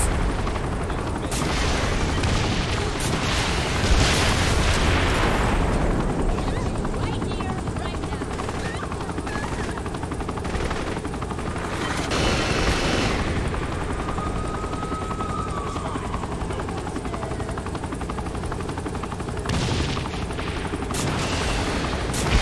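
A helicopter's rotor thumps and whirs steadily.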